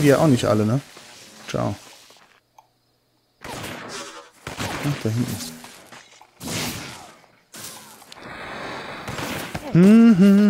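Electric bolts crackle and zap in short bursts.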